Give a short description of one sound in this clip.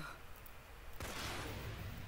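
A flare gun fires with a loud whooshing hiss.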